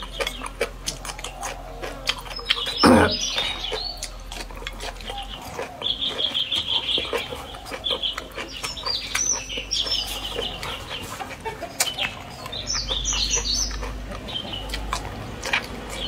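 A young woman chews food with wet smacking sounds, close to the microphone.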